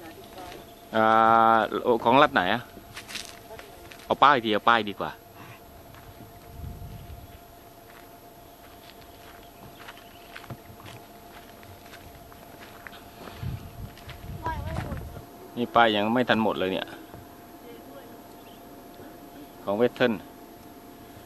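A young man talks nearby outdoors.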